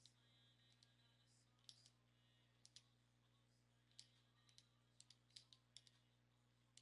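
Short, sharp interface clicks sound as letters are typed one by one.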